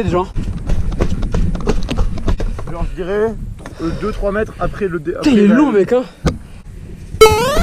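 Bike tyres clatter over wooden planks.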